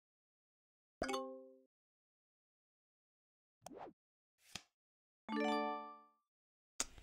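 Short electronic chimes ring out.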